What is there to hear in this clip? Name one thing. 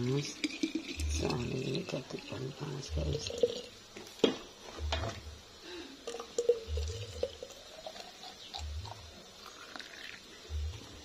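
Liquid pours into a flask with a gurgling, rising tone.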